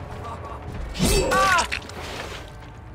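A heavy blade swings and strikes with a loud whoosh.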